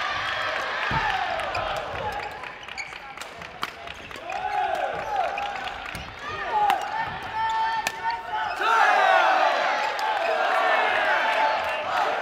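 Badminton rackets smack a shuttlecock.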